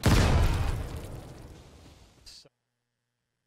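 An explosion booms and slowly fades away.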